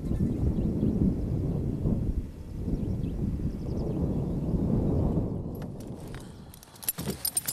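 Wind rumbles across open ground outdoors.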